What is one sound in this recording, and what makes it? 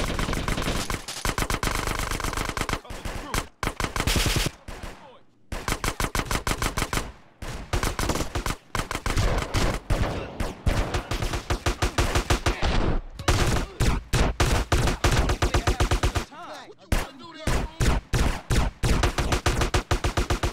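Guns fire in rapid bursts of sharp shots.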